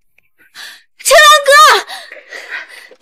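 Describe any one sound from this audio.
A young woman cries out in pain.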